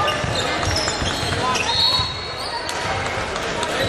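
A basketball bounces with dull thumps.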